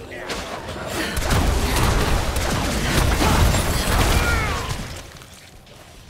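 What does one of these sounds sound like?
Magic spells burst and crackle.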